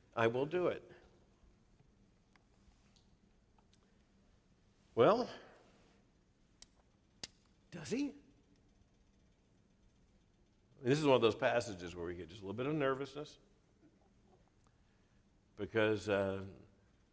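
A middle-aged man speaks into a microphone in short bursts with pauses.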